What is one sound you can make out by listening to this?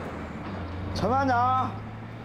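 A man shouts a loud command.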